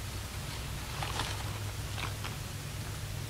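Paper crinkles as it is unfolded.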